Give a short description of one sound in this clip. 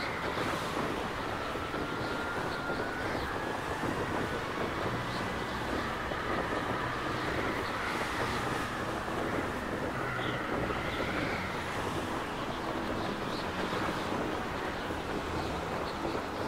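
A horse gallops steadily, hooves thudding on snow.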